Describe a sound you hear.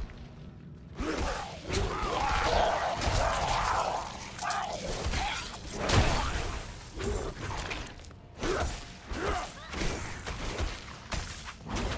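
Magic blasts crackle and boom in a fight.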